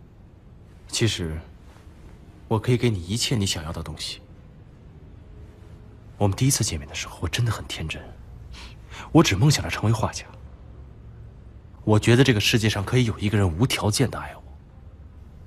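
A young man speaks quietly and earnestly.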